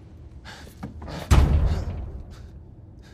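A car door thuds open.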